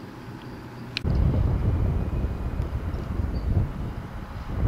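Wind rumbles outdoors across open grassland.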